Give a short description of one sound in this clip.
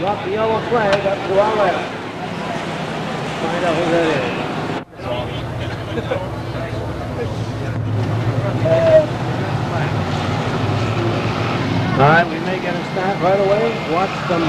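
Race cars roar past at speed.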